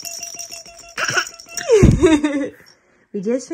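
A baby fusses and whines briefly.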